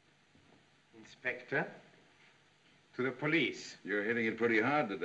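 A man speaks calmly in a room.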